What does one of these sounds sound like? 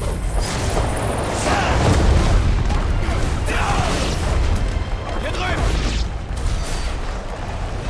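Magic blasts crackle and boom.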